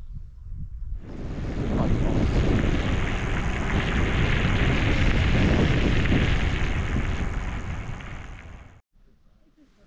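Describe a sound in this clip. Wind rushes loudly past the microphone while riding.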